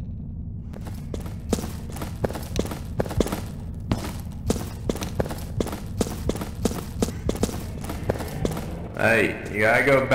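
Armoured footsteps clank quickly and steadily on a hard floor.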